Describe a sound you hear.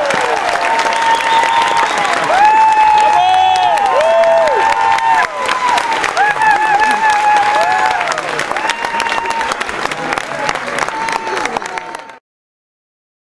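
A crowd sings together.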